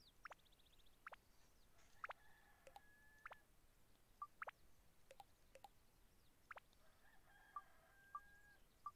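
Short electronic menu blips sound again and again.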